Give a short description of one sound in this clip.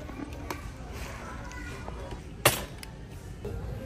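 A plastic jug thumps down into a shopping cart.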